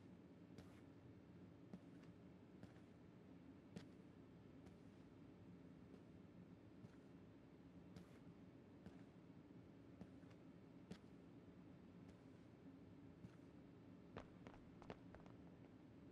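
Footsteps fall slowly and evenly on a hard floor.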